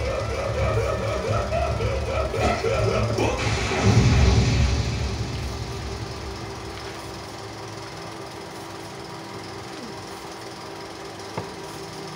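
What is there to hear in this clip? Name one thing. Music plays from a television, heard through a window.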